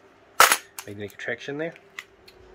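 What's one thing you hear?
Small metal parts rattle in a metal tin.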